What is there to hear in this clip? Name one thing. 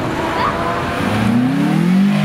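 A car engine roars loudly as it accelerates close by.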